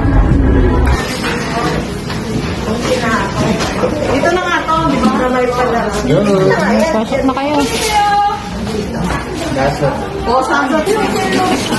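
Women talk with animation close by.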